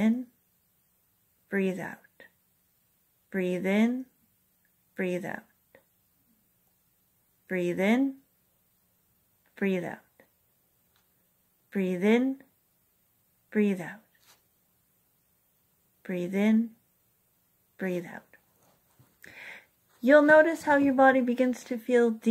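A woman speaks close to the microphone in short bursts with pauses.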